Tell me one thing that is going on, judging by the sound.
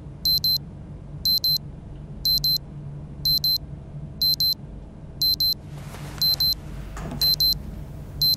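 An alarm clock beeps loudly in quick double beeps, about once a second.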